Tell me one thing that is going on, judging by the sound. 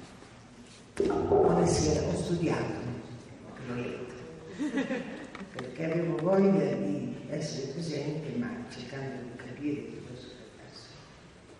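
A middle-aged woman speaks calmly into a microphone, heard through loudspeakers in an echoing room.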